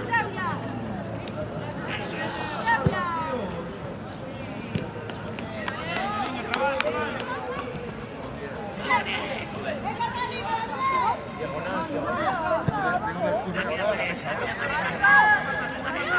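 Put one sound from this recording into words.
Boys shout and call to each other across an open outdoor field.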